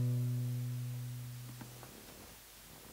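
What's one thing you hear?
A guitar note rings and fades.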